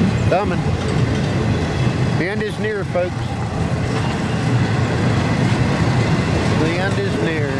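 A freight train rumbles and clatters steadily past on the tracks.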